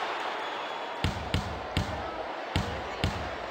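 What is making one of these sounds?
A basketball bounces steadily on a hard court.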